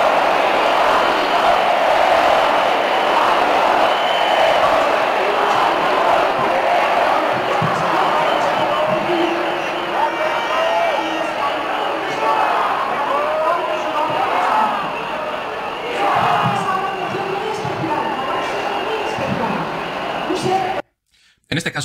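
A large outdoor crowd roars and chants.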